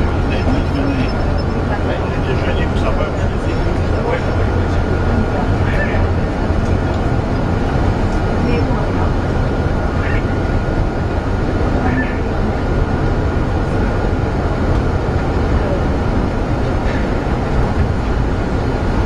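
A vehicle engine rumbles steadily inside a tunnel.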